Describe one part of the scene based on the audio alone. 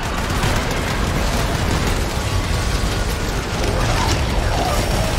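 A low rumble of explosions and effects rolls on steadily.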